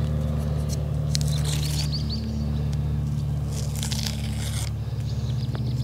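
Plastic tape crinkles and rustles as it is peeled off a thin tree trunk.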